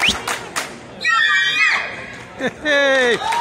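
Young women whoop and shout in high voices, loud and close.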